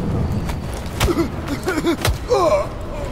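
Heavy punches thud in a fight.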